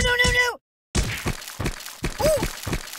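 Something smashes and splatters.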